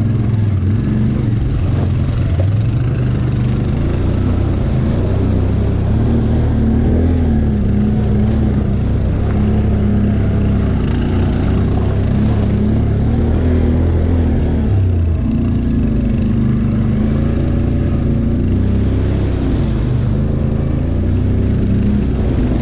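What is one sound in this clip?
An all-terrain vehicle engine rumbles steadily up close, its pitch rising and falling with the throttle.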